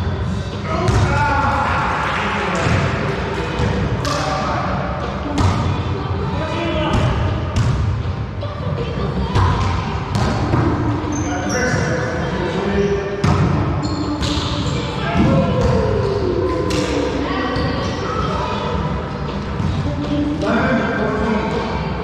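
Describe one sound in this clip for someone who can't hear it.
Men call out and shout to each other during play.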